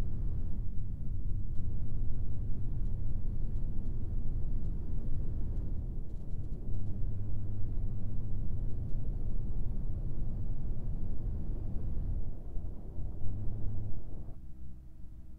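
A truck engine rumbles steadily as it drives.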